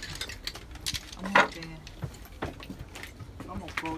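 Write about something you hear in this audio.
A young man handles small objects with soft knocks and clatter.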